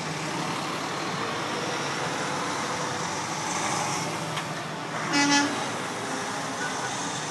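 Truck tyres hiss on the road.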